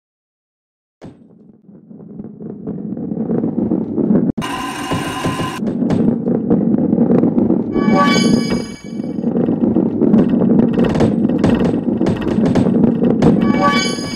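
A ball rolls rumbling along a wooden track.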